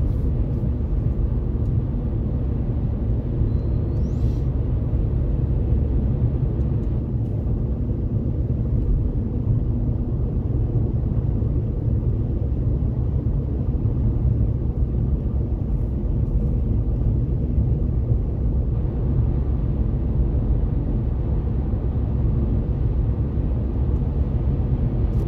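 Tyres roar on asphalt from inside a car cruising at highway speed.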